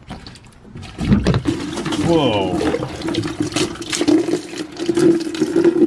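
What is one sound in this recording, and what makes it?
Water pours and splashes into a bucket.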